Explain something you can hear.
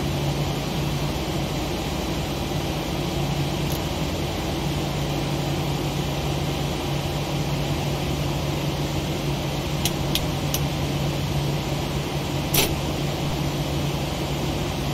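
An aircraft engine hums steadily at idle.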